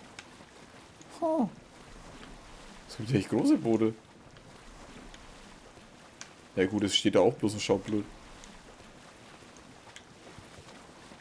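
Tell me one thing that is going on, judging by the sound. Water splashes softly against a sailing boat's hull.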